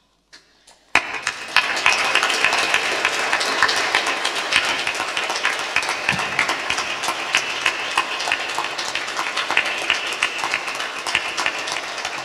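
People applaud steadily.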